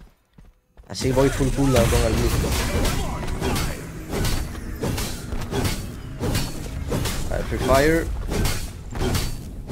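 Game fighting sounds clash and thump loudly.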